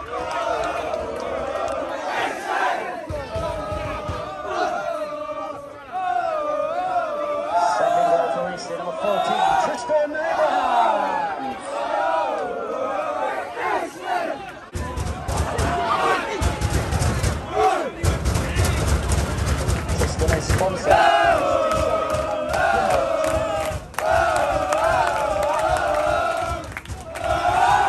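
A crowd of fans chants and sings loudly in an open-air stadium.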